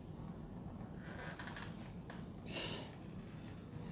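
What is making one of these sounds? A fabric curtain rustles as it is pulled.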